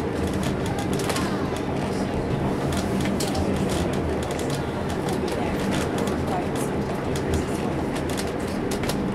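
Tyres crunch and rattle over loose stones at speed.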